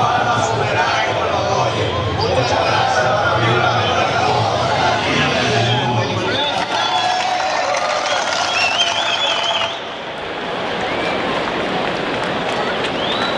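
A large crowd murmurs and chatters in an open stadium.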